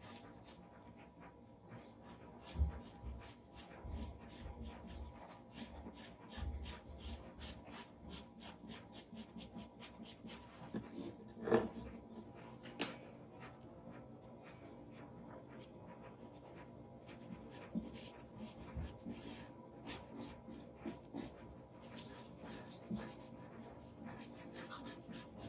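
A charcoal stick scratches and scrapes across paper.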